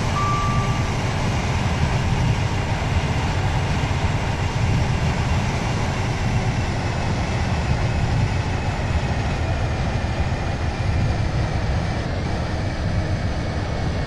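A train rumbles steadily along rails at speed.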